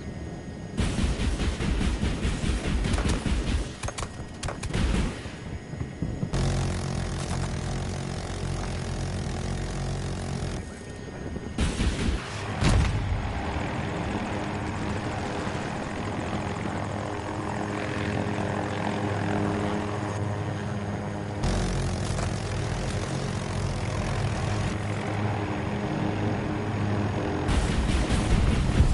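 A helicopter engine and rotor drone steadily.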